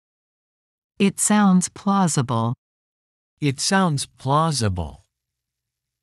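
A man speaks clearly and calmly.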